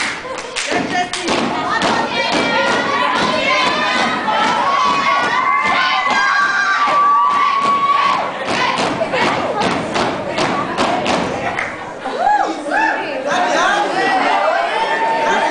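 A group of young women chant and shout in unison.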